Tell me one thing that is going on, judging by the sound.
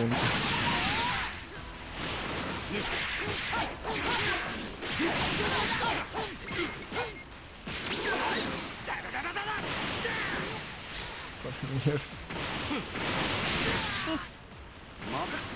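Punches and kicks land with sharp, heavy impacts.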